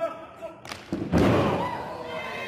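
A body slams heavily onto a wrestling ring mat with a loud thud.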